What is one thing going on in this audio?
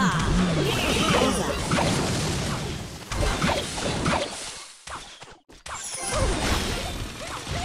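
Game sound effects clash and crash as small fighters battle.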